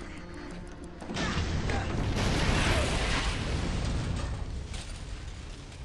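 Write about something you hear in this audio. An explosion bursts with a loud, rumbling roar.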